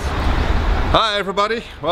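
A middle-aged man speaks with animation close by.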